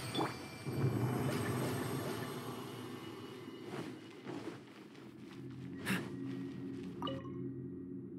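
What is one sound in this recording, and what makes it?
Footsteps run across a hard stone floor and up stone steps.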